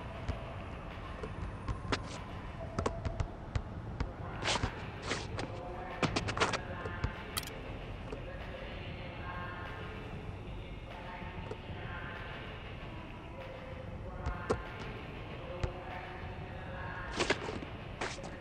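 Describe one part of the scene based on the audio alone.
A basketball bounces repeatedly on an outdoor court.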